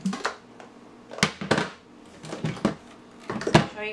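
A blender jar knocks against its base as it is lifted off.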